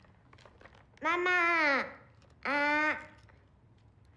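A young woman speaks in a calm, questioning voice nearby.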